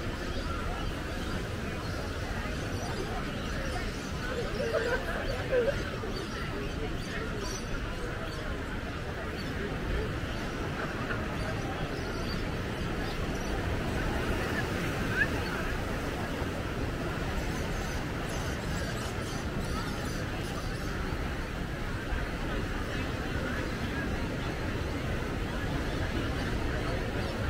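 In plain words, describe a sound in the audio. Waves break and wash onto rocks nearby.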